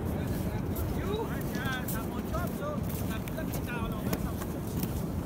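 Men talk briefly at a distance.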